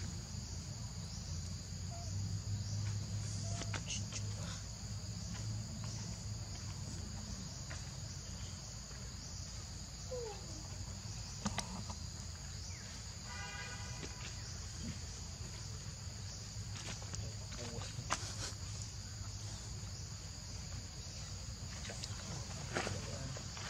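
Small monkeys' feet rustle and crunch on dry leaves.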